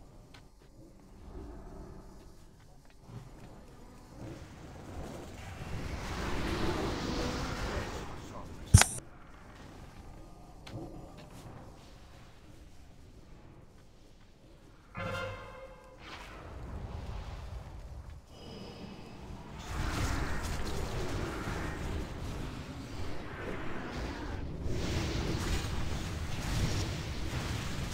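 Spell effects and battle sounds from a game crackle and boom throughout.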